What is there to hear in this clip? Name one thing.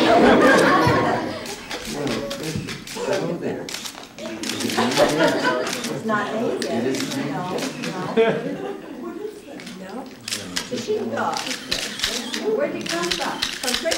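An elderly woman talks and laughs nearby.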